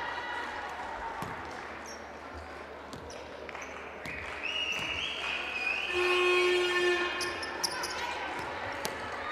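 Basketball shoes squeak on a hard court.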